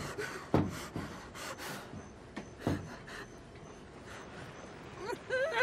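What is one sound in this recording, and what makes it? A woman gasps and whimpers in fear close by.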